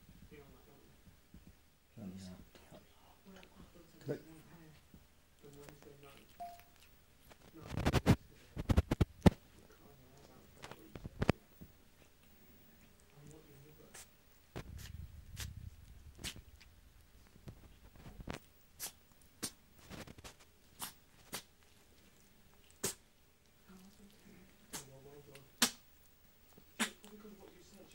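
A cat chews and smacks its lips loudly up close.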